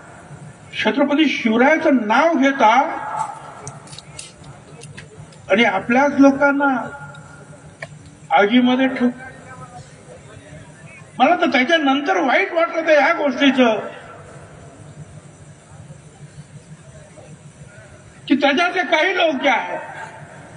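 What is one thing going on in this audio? An elderly man speaks forcefully into a microphone through loudspeakers, in bursts with pauses.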